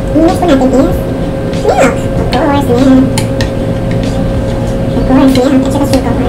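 A spoon clinks and stirs in a bowl.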